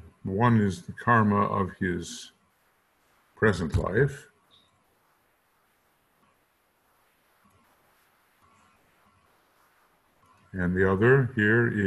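An elderly man speaks calmly through a microphone, in short bursts with pauses.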